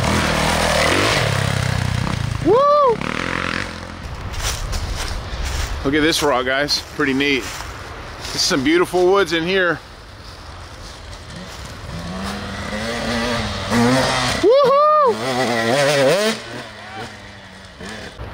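A dirt bike engine revs and roars nearby.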